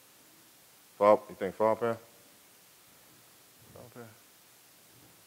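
A man speaks calmly through a microphone, in short bursts.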